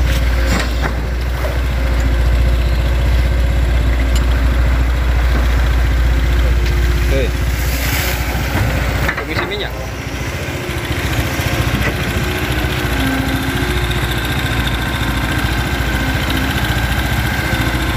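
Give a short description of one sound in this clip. An excavator bucket scrapes and thuds into wet mud.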